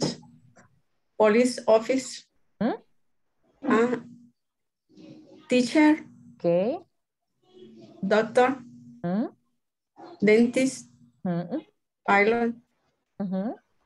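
A woman speaks slowly in short, clear phrases over an online call.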